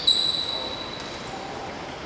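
A referee's whistle blows a long shrill blast.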